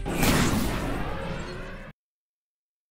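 A racing craft roars past with a loud whoosh that fades away.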